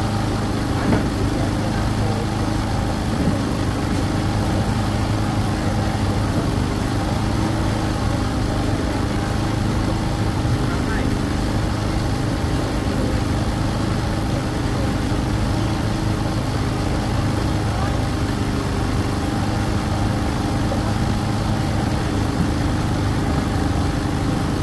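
A crowd chatters steadily outdoors.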